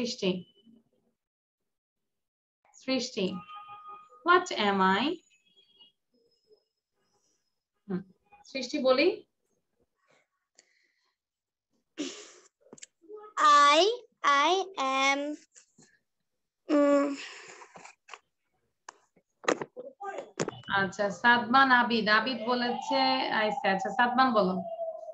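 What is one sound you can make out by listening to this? Children speak and call out in short bursts over an online call.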